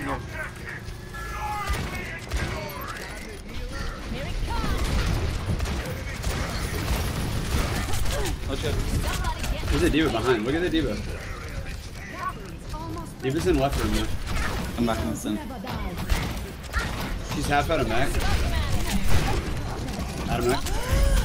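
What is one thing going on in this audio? Gunfire and explosions crackle and boom from a game.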